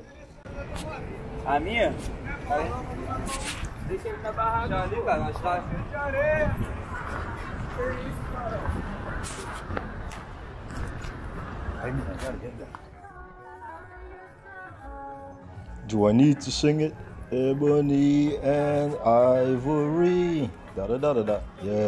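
Men and women chatter and talk nearby outdoors.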